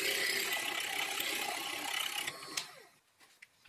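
A drill bores into metal with a steady whirring grind.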